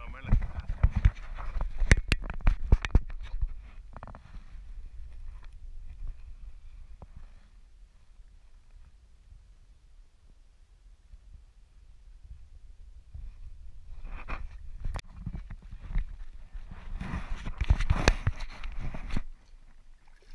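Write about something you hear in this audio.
A kayak paddle dips and splashes in calm water.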